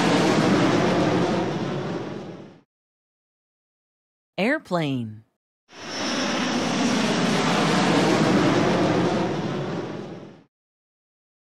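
A jet airplane roars loudly overhead.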